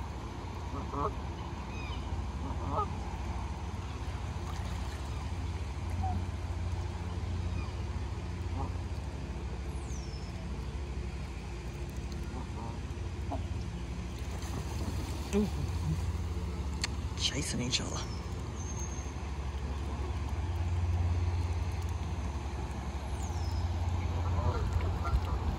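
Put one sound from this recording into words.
Geese honk and call on the water.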